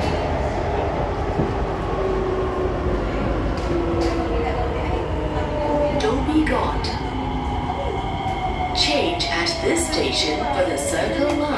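A train's motor whines and falls in pitch as it slows down.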